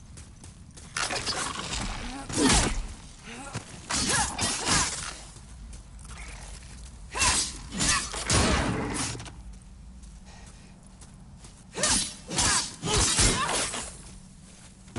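A sword clashes and slashes in bursts against a creature.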